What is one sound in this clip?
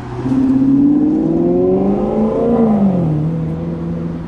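A car engine revs as it pulls away close by.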